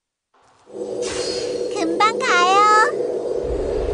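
Magic spells zap and crackle in a fight.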